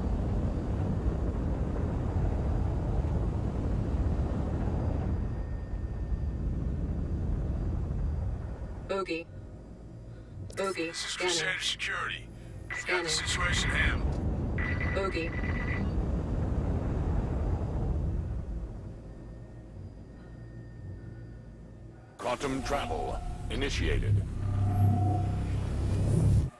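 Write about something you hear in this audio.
A spaceship engine hums with a deep rumble that swells and fades.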